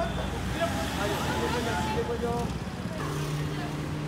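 Traffic rumbles along a busy road outdoors.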